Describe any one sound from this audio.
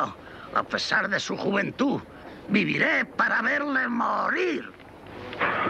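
An elderly man speaks sharply up close.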